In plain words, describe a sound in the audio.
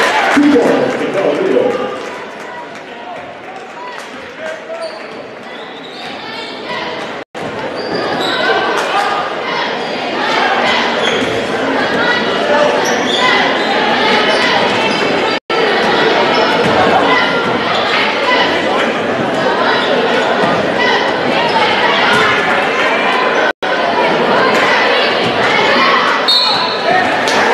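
A large crowd cheers and shouts loudly in an echoing gym.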